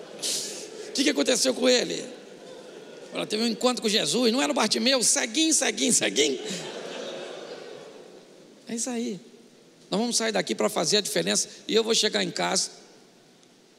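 A middle-aged man speaks with animation through a microphone and loudspeakers in a large echoing hall.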